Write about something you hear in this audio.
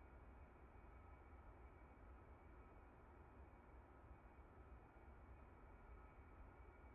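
A jet engine hums steadily with a low rumble.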